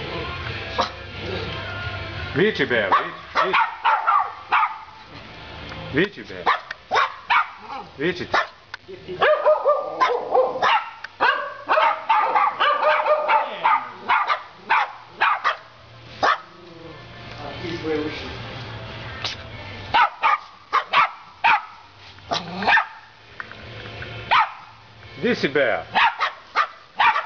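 Dogs bark sharply and excitedly, close by.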